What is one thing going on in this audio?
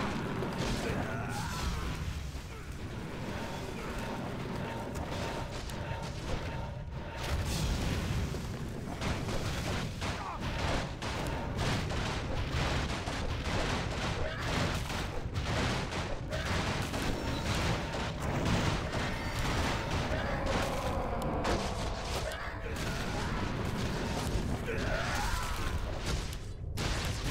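Game battle sounds of clashing weapons and spell blasts play.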